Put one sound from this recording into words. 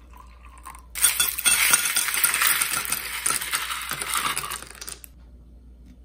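Ice cubes clatter and clink into a glass.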